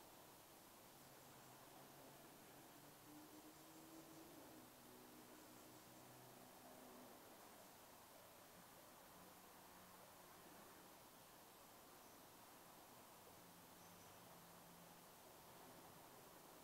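A man speaks slowly and softly through a microphone, with long pauses.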